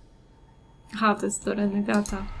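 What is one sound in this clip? A young woman speaks softly and close.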